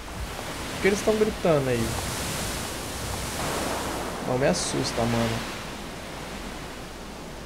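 Waves wash and wind blows over open water.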